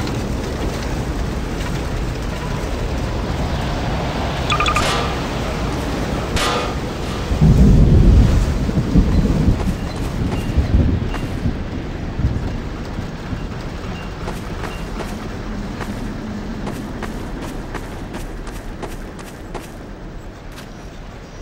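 Wind roars steadily outdoors.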